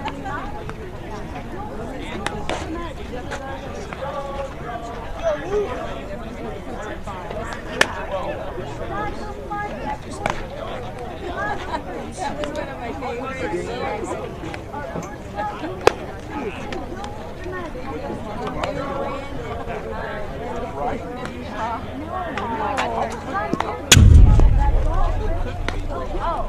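People chatter nearby outdoors.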